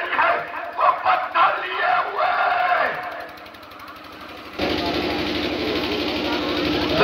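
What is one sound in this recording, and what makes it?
A crowd murmurs and stirs outdoors.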